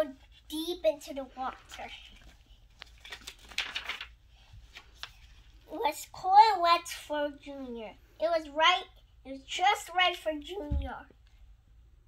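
A young girl reads aloud close by, with lively expression.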